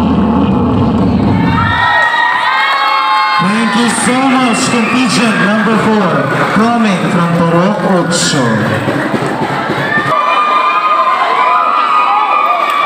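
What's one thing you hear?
Loud pop music with a singing voice plays over loudspeakers.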